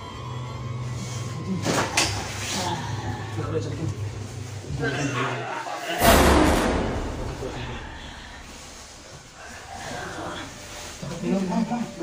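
Young men talk urgently and close by.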